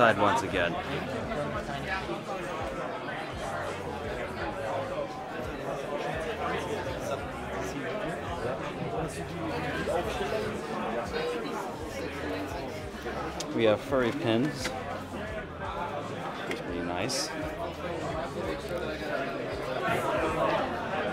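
A crowd of people chatter all around in a large echoing hall.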